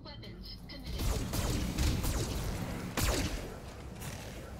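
Laser weapons fire with a loud crackling blast.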